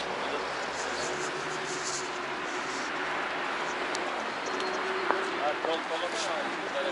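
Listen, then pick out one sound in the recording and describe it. A steady murmur of street noise fills the open air.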